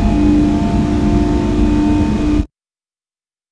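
A train's motor hums and rumbles steadily on the rails, then cuts off abruptly.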